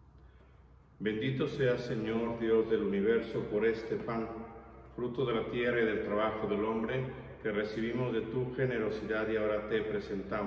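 A man speaks steadily into a close microphone.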